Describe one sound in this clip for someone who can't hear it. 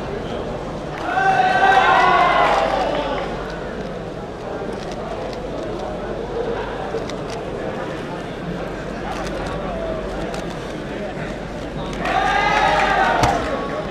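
A puzzle cube clicks rapidly as it is twisted.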